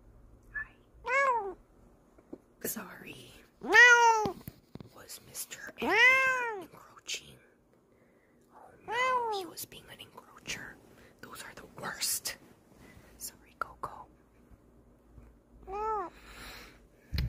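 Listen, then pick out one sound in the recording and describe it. A cat meows loudly up close, several times.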